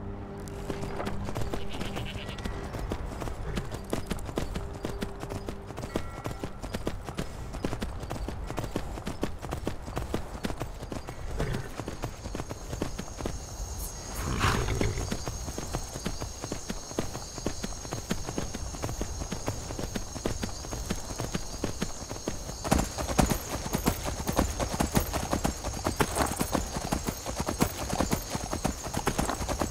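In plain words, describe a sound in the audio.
Horse hooves clop steadily on a stone path.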